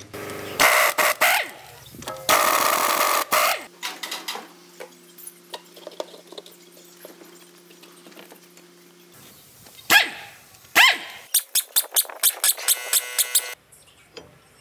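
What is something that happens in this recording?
An impact wrench rattles loudly in short bursts.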